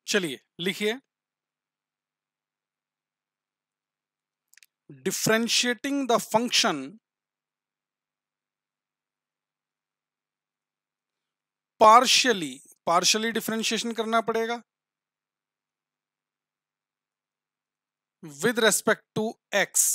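A man speaks calmly into a close microphone, in short bursts with pauses.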